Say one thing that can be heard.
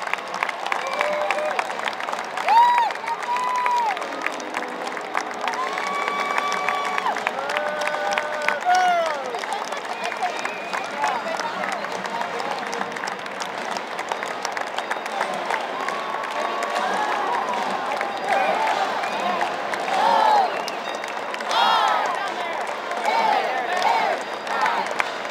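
A crowd cheers and shouts from the stands.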